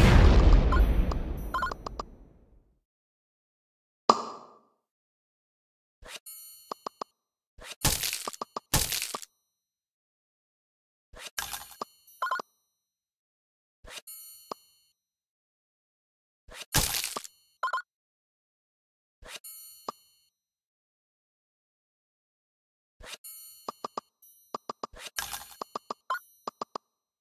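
Game sound effects chime and sparkle in short bursts as tiles match and clear.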